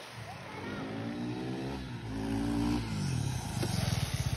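A single-cylinder sport motorcycle accelerates past.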